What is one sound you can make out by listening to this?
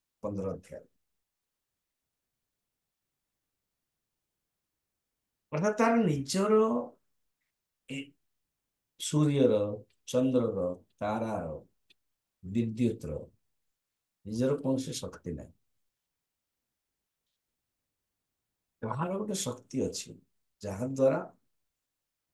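An elderly man speaks calmly into a microphone, in short phrases with long pauses.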